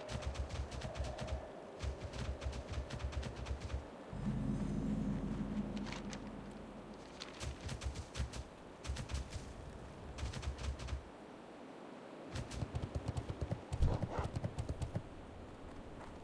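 Quick footsteps thud on grass and dirt.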